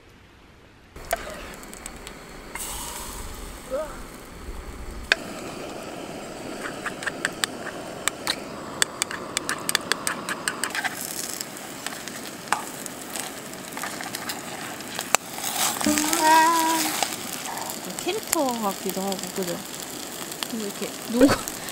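A gas stove burner hisses steadily.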